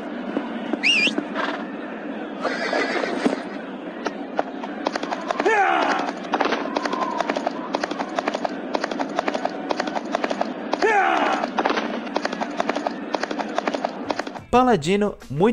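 A horse gallops with steady clopping hooves.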